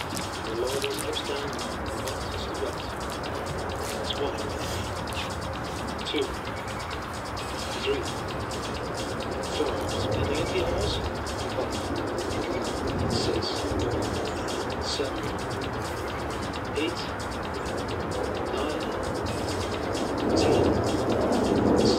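A young man speaks calmly, close by, outdoors.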